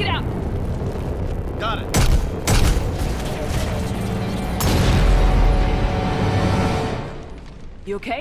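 Heavy gunfire and blasts boom loudly.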